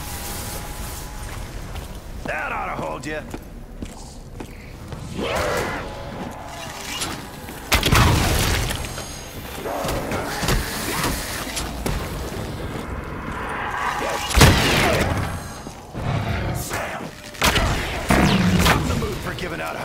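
A fiery weapon fires with loud bursts and crackling flames.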